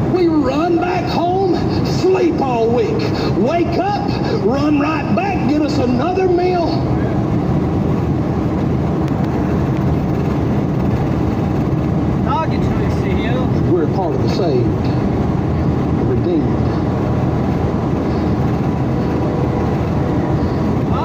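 Tyres roar steadily on a highway from inside a moving car.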